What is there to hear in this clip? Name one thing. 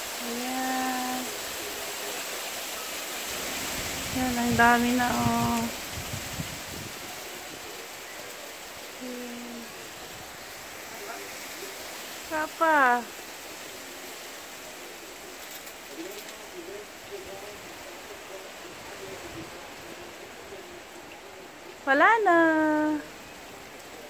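Hail patters steadily on a car and the pavement outdoors.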